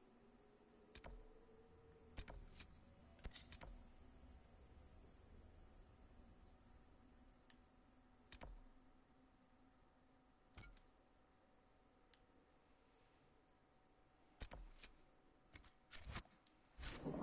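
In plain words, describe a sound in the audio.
Short menu clicks sound as a map is browsed.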